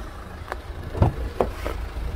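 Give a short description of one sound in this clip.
A car door handle clicks.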